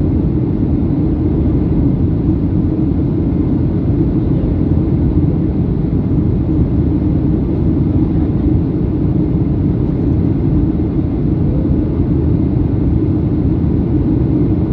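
Jet engines roar steadily with a low, constant rumble heard from inside an airliner cabin.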